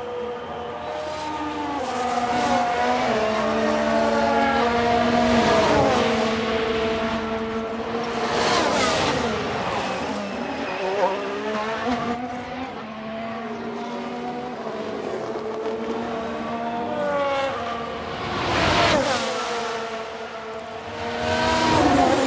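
Racing car engines whine loudly and sweep past, rising and falling in pitch.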